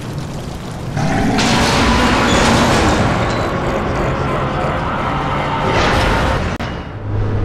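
A burst of fire roars up from the ground.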